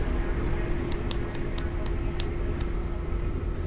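Soft interface clicks tick several times in quick succession.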